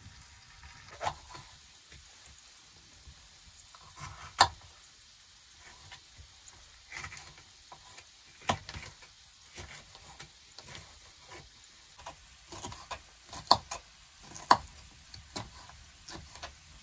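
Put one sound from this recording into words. A knife cuts through a pepper and knocks on a wooden board.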